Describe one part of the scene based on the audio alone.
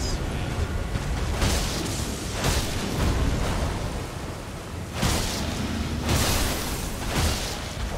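A huge creature thuds and crashes heavily nearby.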